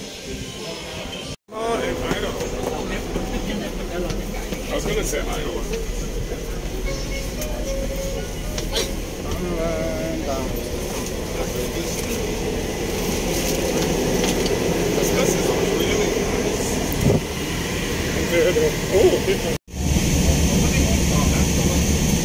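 Men and women chatter in low voices nearby.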